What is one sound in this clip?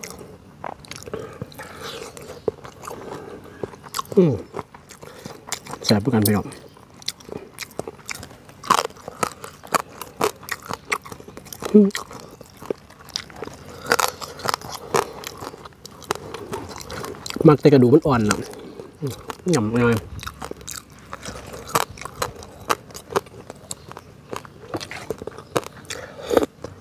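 A man chews and slurps food noisily.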